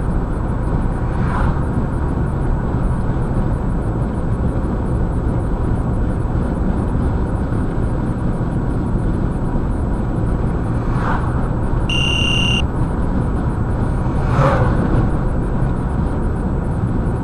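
A car's tyres roar steadily on the road as it drives.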